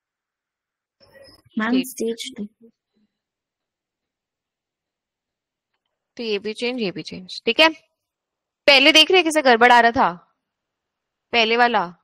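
A young woman speaks calmly over an online call, in short bursts with pauses.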